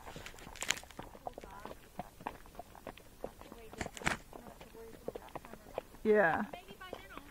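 Horse hooves clop on a dirt trail.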